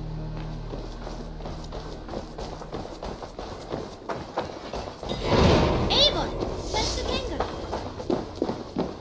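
Footsteps tread steadily on a dirt path.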